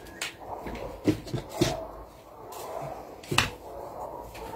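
A wooden ruler knocks lightly against paper.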